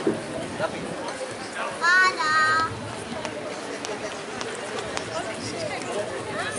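A crowd chatters softly outdoors.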